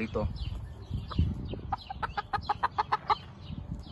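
A rooster flaps its wings in quick bursts.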